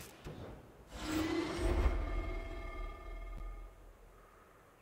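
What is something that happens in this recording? A magic spell bursts with a whoosh and a ringing chime.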